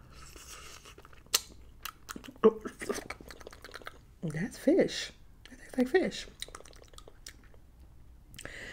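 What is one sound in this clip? A woman chews and crunches food close to a microphone.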